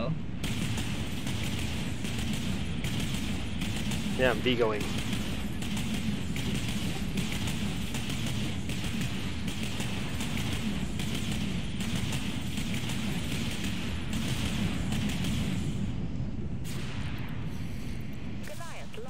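Explosions rumble and boom in a space battle.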